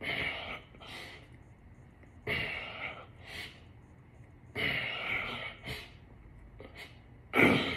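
A man exhales hard in rhythmic bursts close by.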